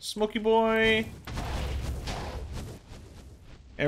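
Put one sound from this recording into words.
Fire bursts and whooshes.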